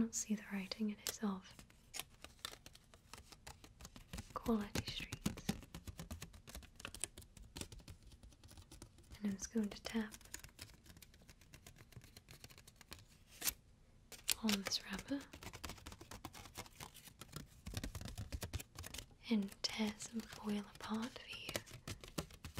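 A young woman whispers softly and closely into a microphone.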